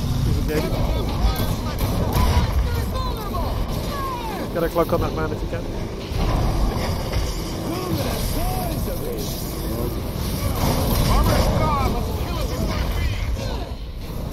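Monsters screech and roar.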